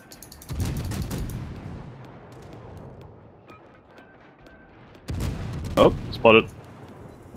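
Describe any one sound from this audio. Heavy ship guns fire with deep, rumbling booms.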